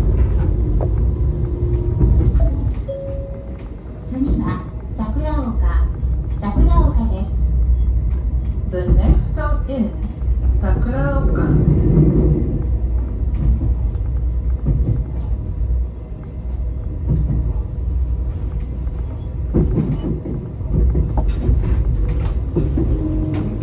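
Train wheels knock over rail joints.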